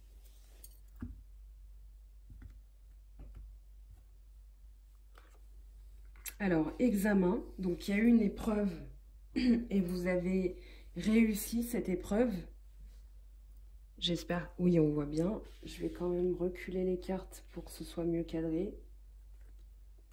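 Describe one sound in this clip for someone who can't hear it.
A card is set down softly on a table.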